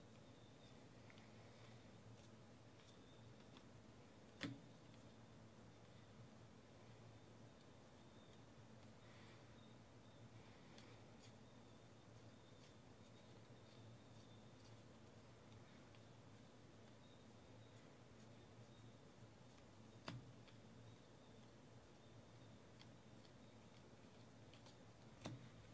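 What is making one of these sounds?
Trading cards rustle and slide as hands flip through a stack.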